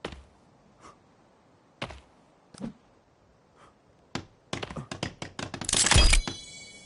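An axe chops into wood with sharp knocks.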